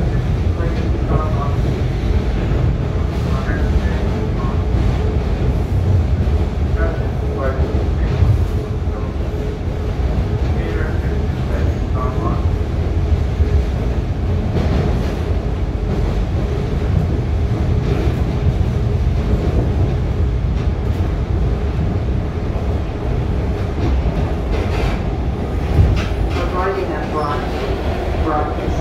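A subway train rumbles loudly along the tracks.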